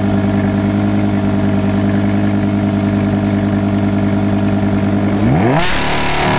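A sports car engine idles with a deep, steady rumble close by.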